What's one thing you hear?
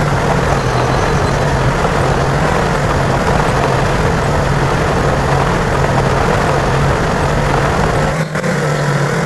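Water splashes under truck tyres.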